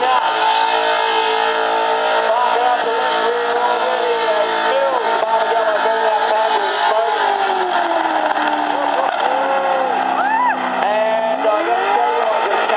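Car engines rev hard, their pitch rising and falling.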